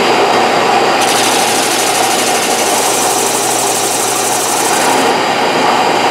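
A wooden piece rasps against a sanding belt.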